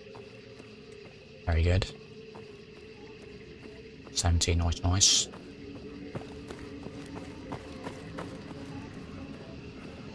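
Footsteps walk slowly on pavement.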